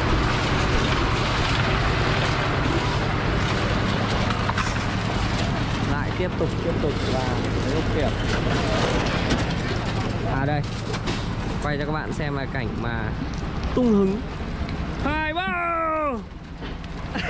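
A concrete mixer drones steadily nearby.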